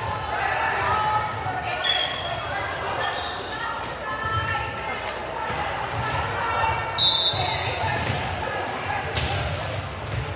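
A volleyball is hit with a thump.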